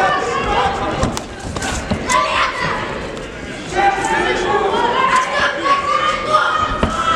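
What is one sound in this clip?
Gloved punches thud against the boxers.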